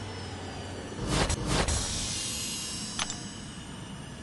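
A game plays a bright chime for a win.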